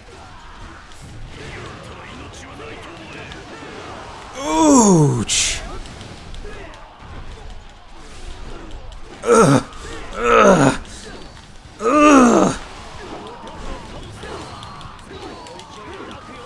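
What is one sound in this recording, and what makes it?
Blades swish and clash as a warrior cuts through a crowd of soldiers.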